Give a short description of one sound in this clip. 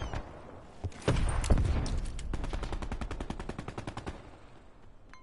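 A rifle fires in rapid bursts.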